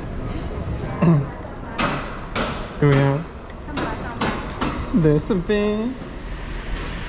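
A woman speaks nearby in short phrases.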